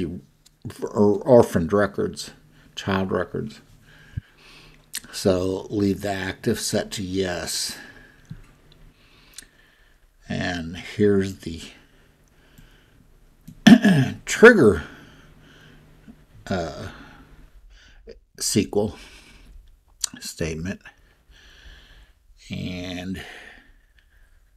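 A man speaks calmly into a microphone, in short phrases with pauses.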